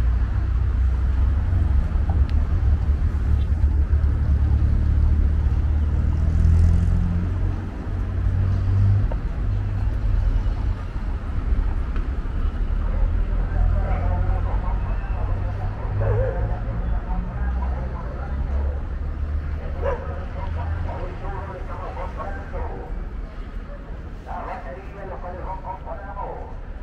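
Traffic hums along a nearby street.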